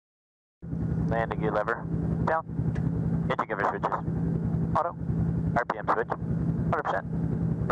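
A man speaks calmly over a crackly headset radio.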